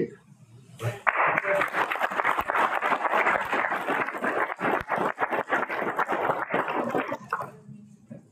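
A group of people applauds steadily in a room.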